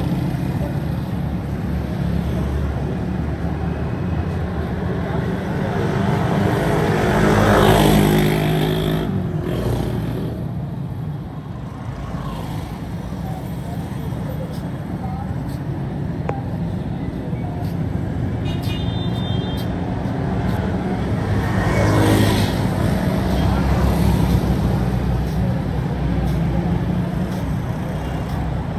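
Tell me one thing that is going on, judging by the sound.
Motorcycles ride along a busy street.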